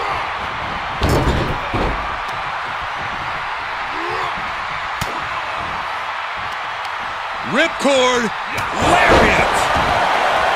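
Heavy bodies thud and slam onto a wrestling mat.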